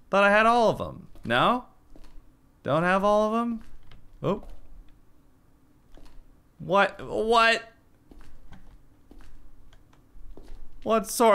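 A man speaks with animation into a close microphone, in short drawn-out bursts.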